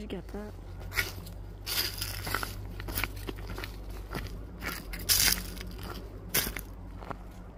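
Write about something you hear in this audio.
Footsteps crunch on a forest floor.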